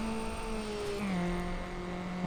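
A racing car engine drops in pitch as the gear shifts up.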